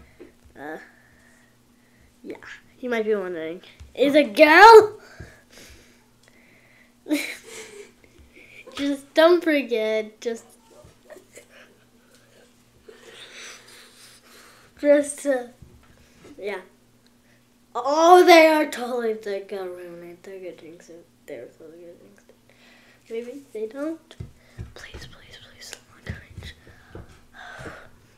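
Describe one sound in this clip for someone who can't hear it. A boy talks with animation close to a microphone, with loud excited outbursts.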